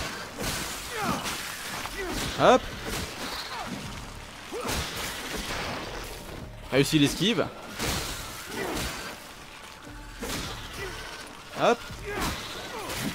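Game combat sound effects of a staff whooshing and striking ring out.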